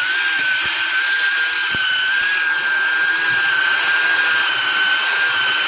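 A small pottery wheel motor whirs with a steady high whine.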